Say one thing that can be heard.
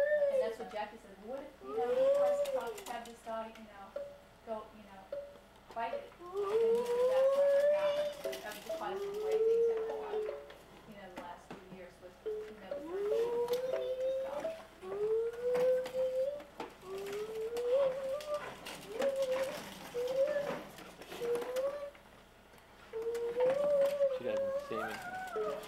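A young girl chatters and sings in a high voice close by.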